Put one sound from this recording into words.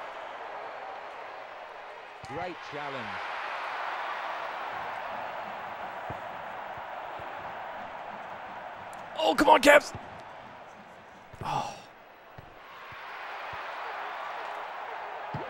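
A stadium crowd roars steadily in a football video game.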